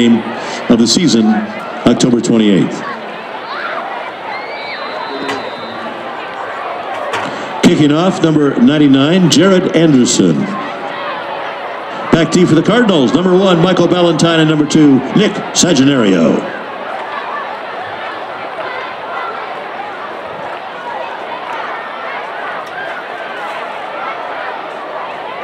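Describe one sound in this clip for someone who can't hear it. A crowd murmurs and cheers in open-air stands.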